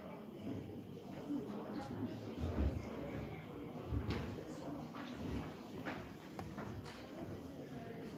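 Footsteps shuffle across a wooden stage.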